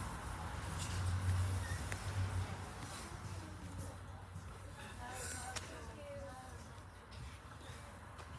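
Cars pass by on a wet road.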